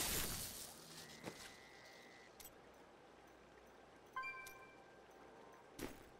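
A menu chimes softly when clicked.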